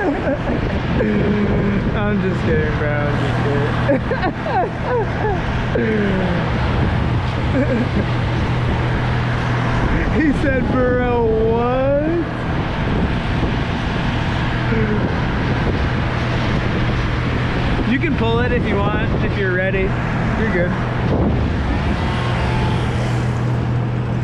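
Cars pass by on a road far below.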